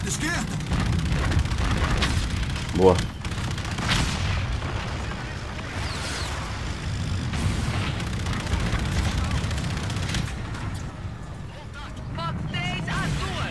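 Explosions boom and crackle nearby.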